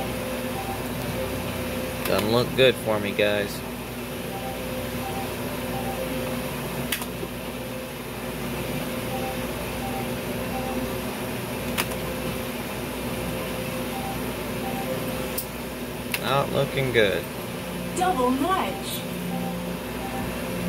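A finger taps a touch button on a slot machine.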